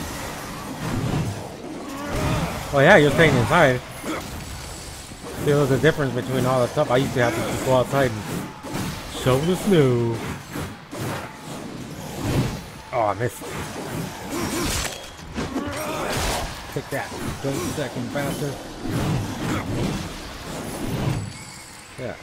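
Heavy blades swing and strike with sharp clangs.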